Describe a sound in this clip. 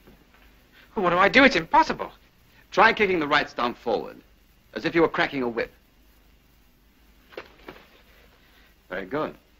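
A second man answers calmly, close by.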